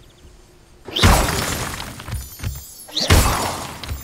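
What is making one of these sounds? A magic blast crackles and booms loudly, twice.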